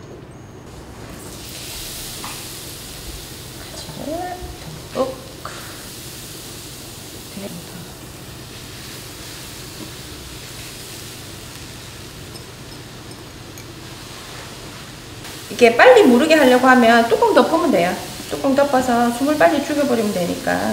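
Oil sizzles softly in a hot pan.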